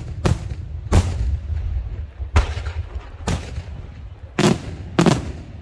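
Fireworks burst overhead in a series of loud, sharp bangs outdoors.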